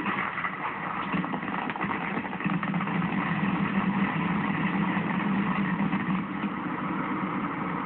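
Fireworks burst and crackle in rapid bursts outdoors.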